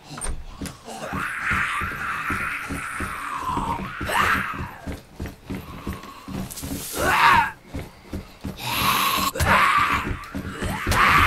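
A zombie snarls and groans close by.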